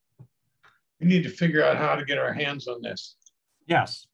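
An elderly man talks over an online call.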